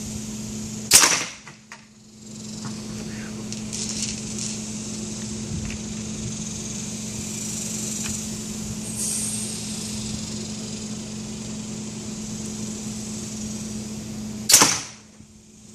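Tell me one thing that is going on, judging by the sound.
A pipe launcher fires with a sharp, loud pop.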